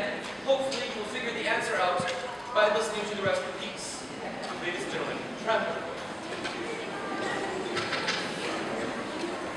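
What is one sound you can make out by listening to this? A man speaks to an audience through a microphone in a large hall.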